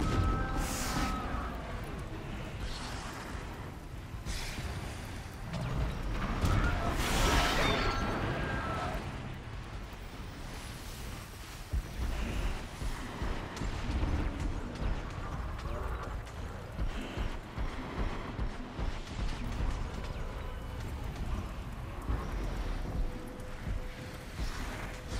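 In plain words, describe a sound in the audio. Tall grass rustles as a person moves through it.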